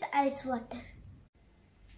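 A young girl speaks brightly close by.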